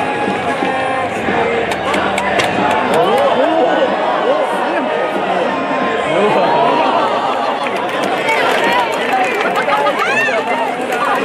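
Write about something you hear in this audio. A large crowd chatters and cheers in an open stadium.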